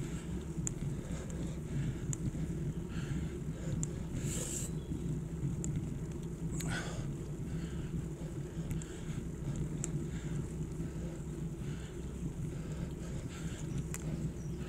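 Bicycle tyres hum on tarmac.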